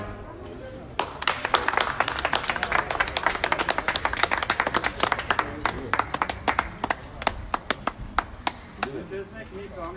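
A crowd claps and applauds outdoors.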